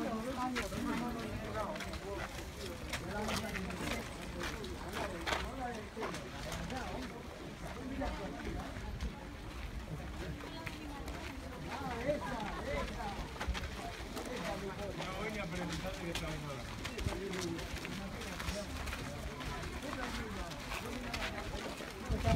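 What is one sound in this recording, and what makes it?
Young women talk casually close by, outdoors.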